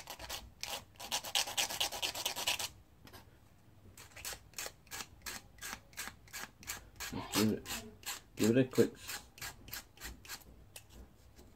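A blade scrapes a small plastic part in quick, short strokes.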